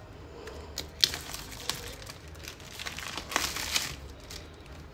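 Plastic wrap crinkles and tears.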